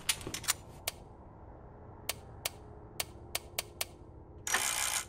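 A safe's combination dial clicks as it turns.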